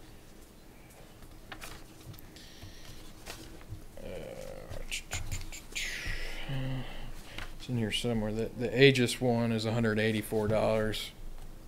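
Paper sheets rustle in a man's hands.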